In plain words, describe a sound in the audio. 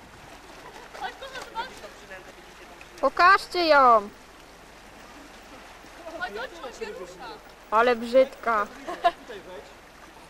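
A woman exclaims excitedly nearby.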